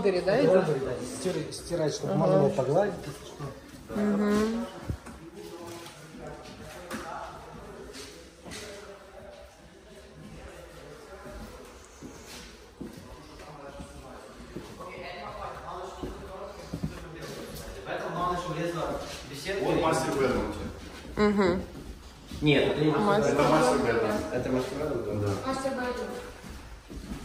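A man talks casually close by.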